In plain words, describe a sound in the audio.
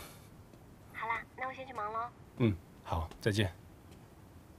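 A man talks calmly on a phone, close by.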